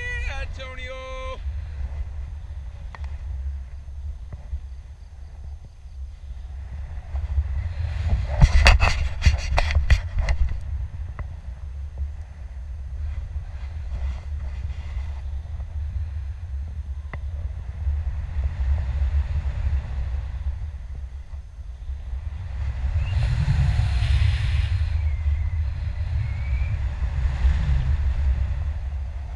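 Strong wind rushes and buffets against a microphone.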